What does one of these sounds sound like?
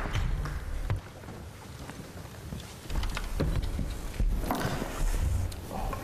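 Chairs knock and scrape on a wooden stage.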